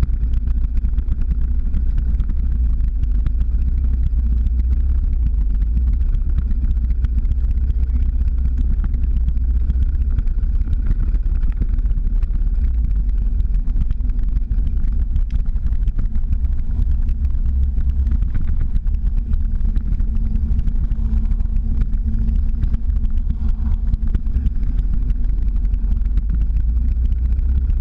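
Wind rumbles loudly and steadily against the microphone outdoors.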